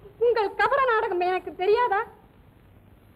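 A woman speaks brightly in a high voice, close by.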